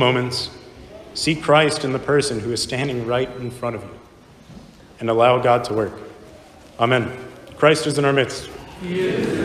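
A man chants in a low voice in a large echoing hall.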